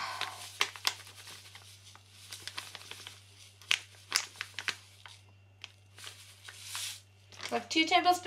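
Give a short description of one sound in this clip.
Powder pours and rustles into a bowl.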